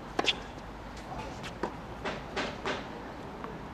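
A tennis ball bounces sharply on a hard court several times.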